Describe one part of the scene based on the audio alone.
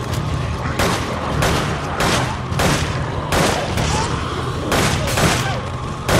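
A dog snarls and growls.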